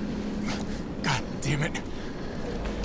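A young woman groans weakly.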